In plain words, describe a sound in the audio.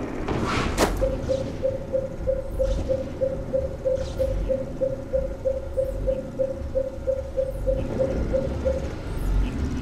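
A handheld device beeps rapidly and steadily.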